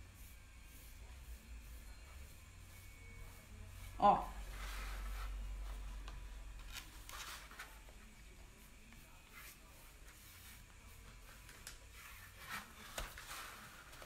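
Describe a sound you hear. A paintbrush brushes softly across a board.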